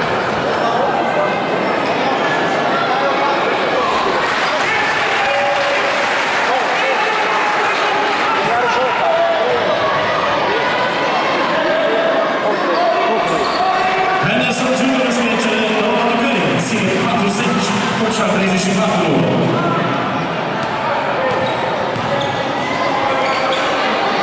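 A crowd of spectators chatters and cheers in an echoing sports hall.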